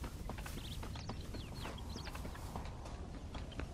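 Footsteps crunch quickly over dry ground.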